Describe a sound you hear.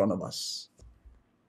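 A man speaks briefly and close to a microphone.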